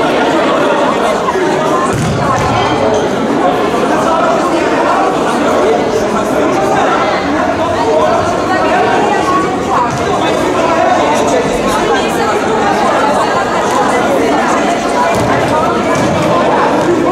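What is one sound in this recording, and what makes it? A ball thuds on the floor.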